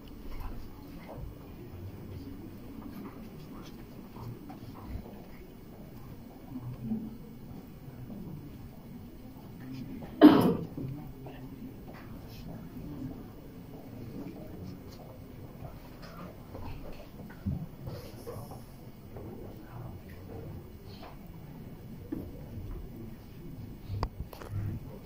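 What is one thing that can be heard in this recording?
A crowd of men and women murmurs quietly in a room.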